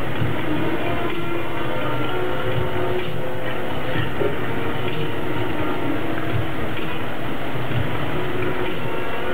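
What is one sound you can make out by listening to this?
Jets of water splash steadily onto a hard surface outdoors.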